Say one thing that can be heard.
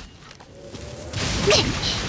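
A lightning bolt cracks.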